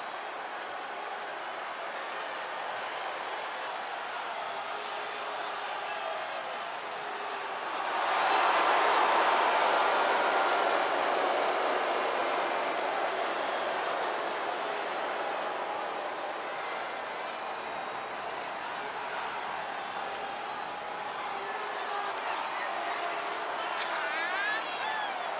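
A large crowd cheers in a big echoing arena, swelling loudly as the entrance begins.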